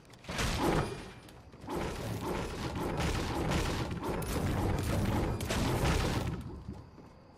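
A pickaxe strikes wood again and again.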